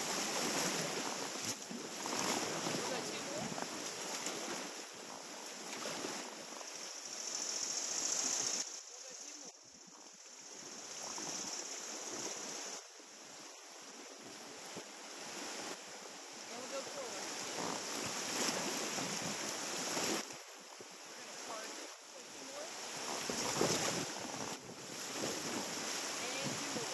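River water rushes over rocks close by, outdoors.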